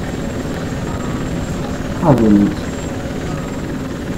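A large aircraft's engines roar overhead.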